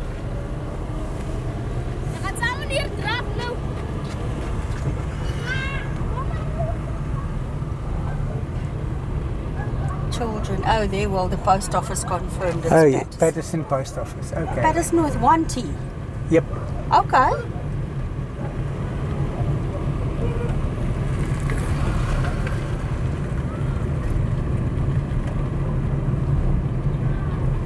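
A car engine hums steadily with tyres rumbling on the road.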